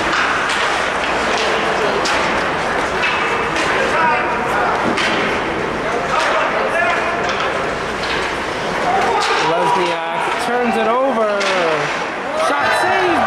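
Skates scrape across ice in a large echoing hall.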